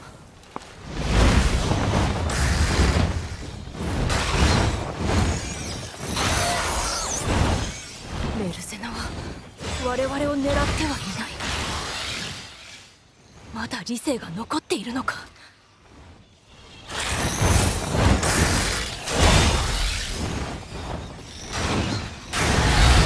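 A huge dragon beats its wings.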